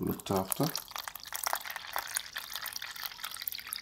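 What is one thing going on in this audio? Water pours from a bottle and splashes into a plastic tub.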